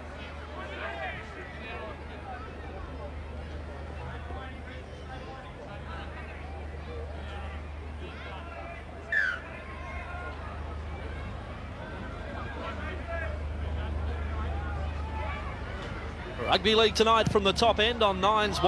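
A crowd murmurs and cheers in a large open stadium.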